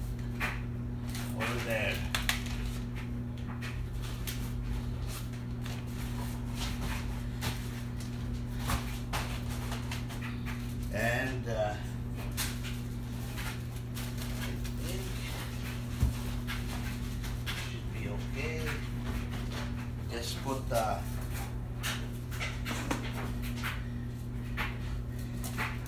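Paper and cardboard rustle as they are handled.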